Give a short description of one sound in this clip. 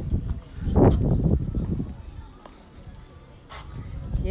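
Footsteps scuff on stone paving nearby.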